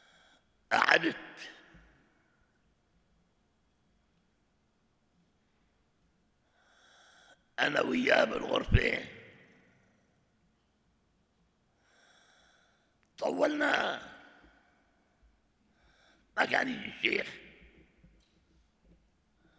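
An elderly man speaks slowly and calmly into a microphone, in short phrases with long pauses, in an echoing room.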